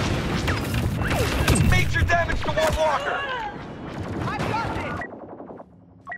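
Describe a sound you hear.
Blaster fire and explosions boom in a game battle.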